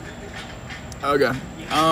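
A young man speaks close by.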